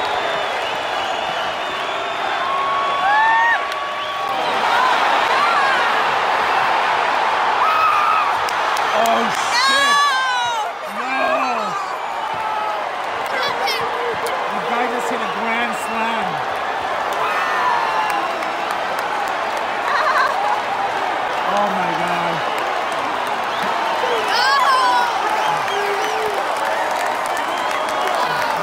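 Men in the crowd shout and whistle loudly.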